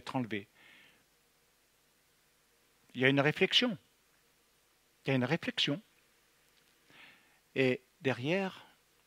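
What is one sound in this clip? A middle-aged man speaks with animation into a close microphone, in short bursts with pauses.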